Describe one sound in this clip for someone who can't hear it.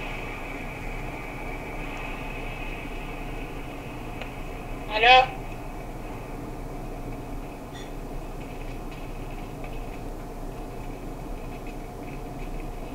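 Fingers tap softly on a phone's touchscreen.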